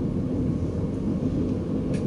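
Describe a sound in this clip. A passing train rushes by close alongside.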